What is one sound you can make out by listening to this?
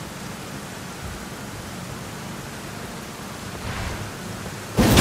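Heavy footsteps of a huge creature thud on stone.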